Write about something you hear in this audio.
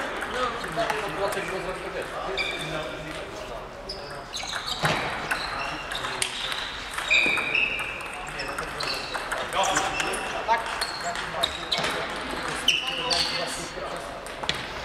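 Table tennis balls click off paddles and tables in a large echoing hall.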